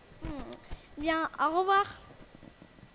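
A young boy speaks into a microphone with animation.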